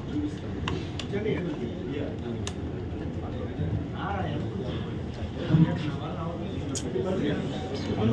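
Several people talk in the background of a busy room.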